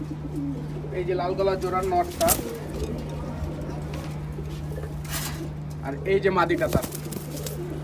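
Pigeons coo close by.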